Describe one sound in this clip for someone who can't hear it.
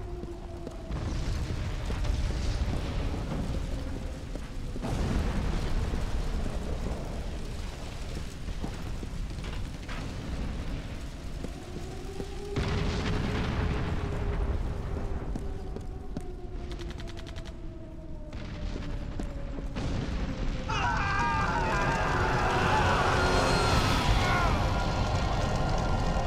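Loud explosions rumble in the distance.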